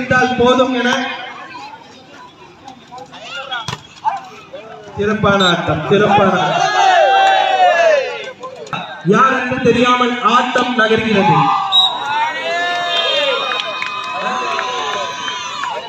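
A crowd of men shouts and cheers loudly outdoors.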